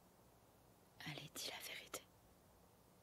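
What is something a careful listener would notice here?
A young woman speaks earnestly, close by.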